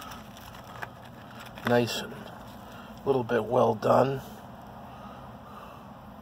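A cardboard fry box rustles as fries are picked out.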